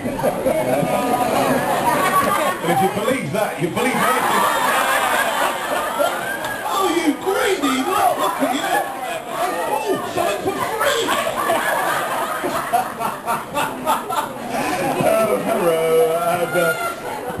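A man speaks with animation through a microphone in a large hall.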